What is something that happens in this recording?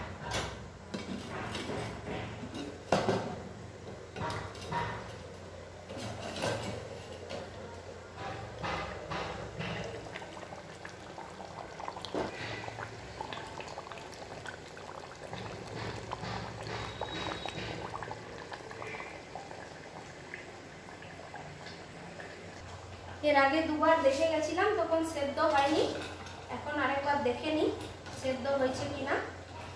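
A wooden spoon scrapes and knocks inside a clay pot.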